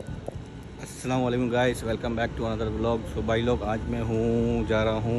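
A young man speaks close to a phone's microphone, with animation.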